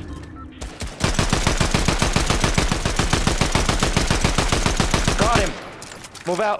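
A gun fires in a rapid, steady burst.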